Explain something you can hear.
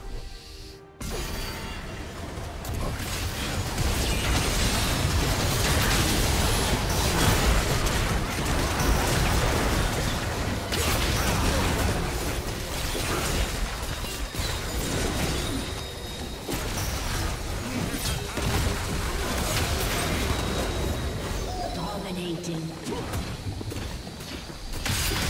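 Magic spell blasts crackle and boom in a busy fight.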